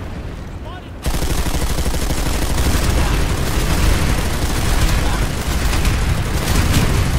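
A heavy war machine rumbles loudly close by.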